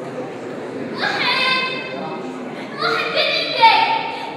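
Young women sing in a large echoing hall.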